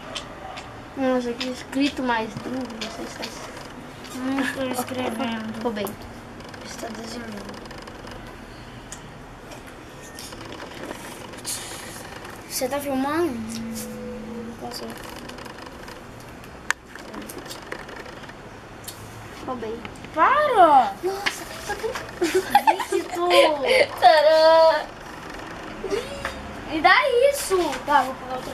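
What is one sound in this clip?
Children talk nearby with animation.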